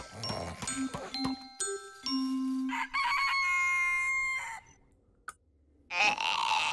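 A cartoon character snores loudly in its sleep.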